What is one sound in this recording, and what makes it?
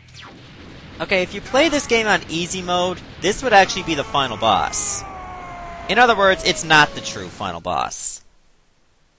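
Energy blasts zap and crackle in quick bursts.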